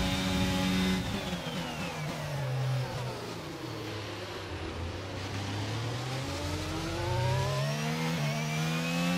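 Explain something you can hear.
A racing car engine winds down as the car brakes hard, then revs back up.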